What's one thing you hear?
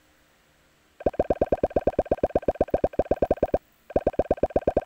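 Rapid pitched game blips ring out as balls bounce off blocks.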